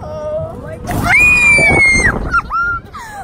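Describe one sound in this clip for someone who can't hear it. A woman screams with excitement.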